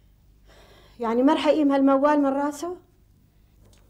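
An older woman speaks loudly and emotionally, close by.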